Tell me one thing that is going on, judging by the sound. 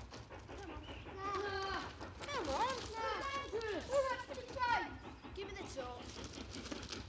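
Children talk to one another outdoors.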